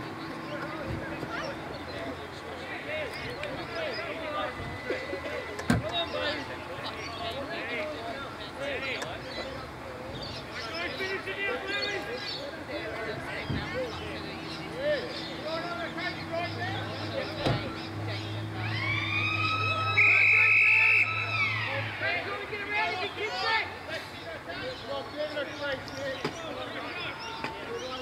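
Men call out and chatter across an open sports field.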